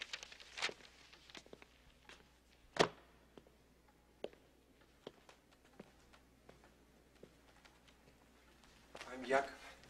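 Footsteps thud across a hard floor.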